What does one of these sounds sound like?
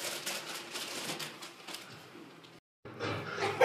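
Popcorn pops and crackles in a machine.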